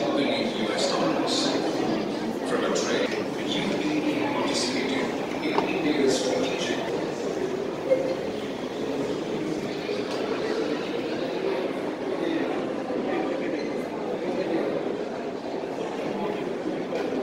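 A crowd of visitors murmurs in a large echoing hall.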